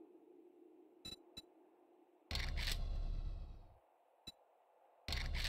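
Short menu clicks sound as options are switched.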